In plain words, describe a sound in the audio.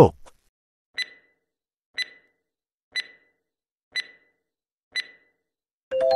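A countdown timer ticks once each second.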